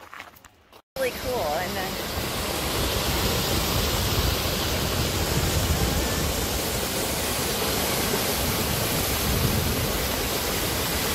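A waterfall roars steadily outdoors.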